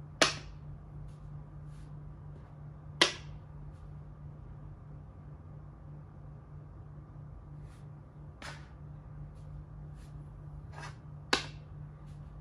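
Game pieces click down sharply on a wooden board.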